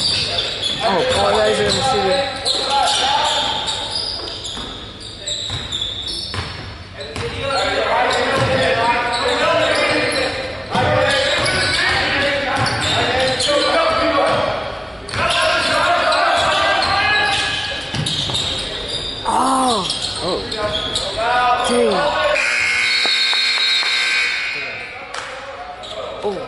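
Young players and spectators shout and call out across an echoing hall.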